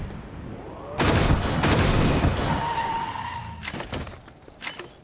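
A car engine roars as a vehicle speeds along.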